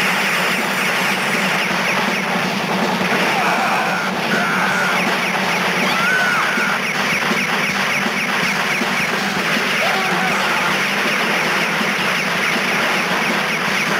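Explosions boom now and then.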